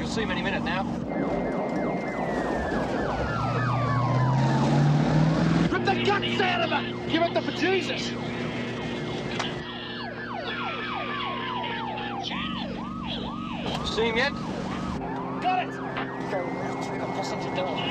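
A police siren wails, falling in pitch.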